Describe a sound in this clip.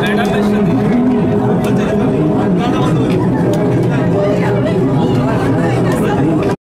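A crowd chatters and calls out over loud noise nearby.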